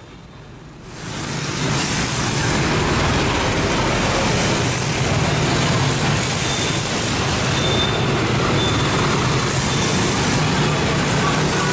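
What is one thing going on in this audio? Motorbike engines hum and buzz along a busy street.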